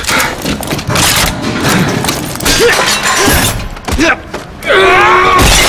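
Heavy blows thud in a struggle.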